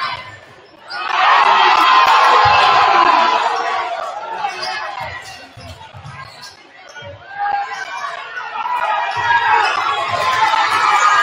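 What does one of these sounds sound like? A crowd cheers loudly in a large echoing gym.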